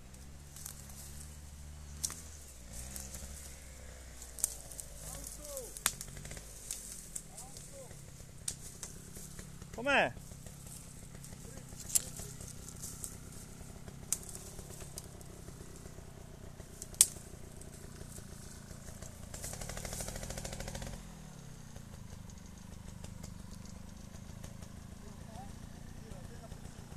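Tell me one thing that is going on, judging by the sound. Motorbike engines idle and rev unevenly a short way off.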